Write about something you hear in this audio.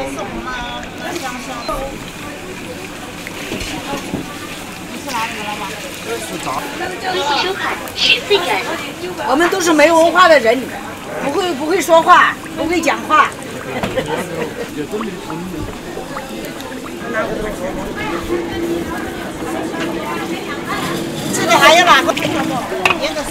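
Hot oil bubbles and sizzles steadily in a pan.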